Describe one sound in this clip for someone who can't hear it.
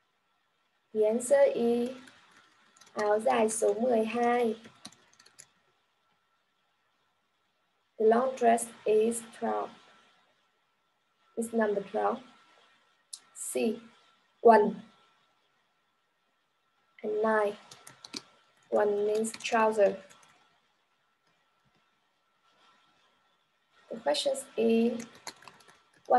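A young woman speaks clearly and slowly through an online call, with pauses between phrases.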